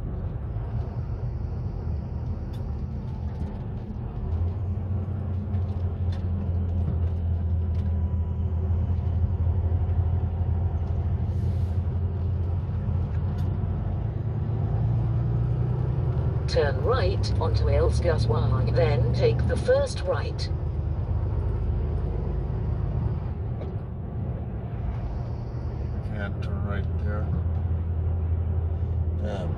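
A vehicle's engine hums steadily with road rumble.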